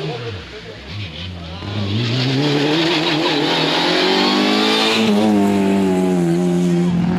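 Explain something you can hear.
A rally car engine roars closer, revving hard as the car passes close by and speeds away.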